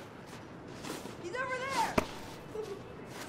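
A young girl calls out.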